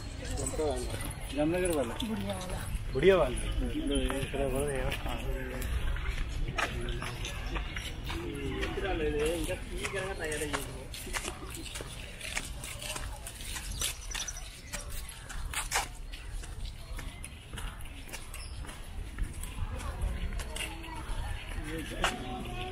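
Footsteps scuff along a dirt path close by.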